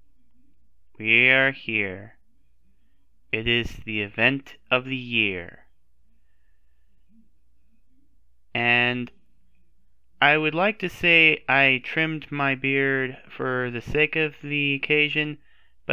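A young man speaks with animation into a headset microphone, close up.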